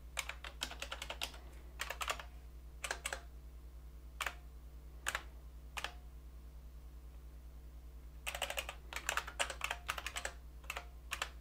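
Keys on a keyboard click in quick bursts of typing.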